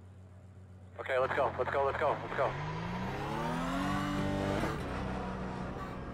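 A race car engine roars and revs up, rising through the gears.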